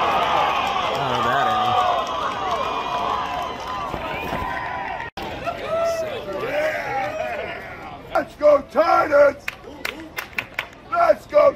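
A crowd of spectators cheers and shouts in an open stadium.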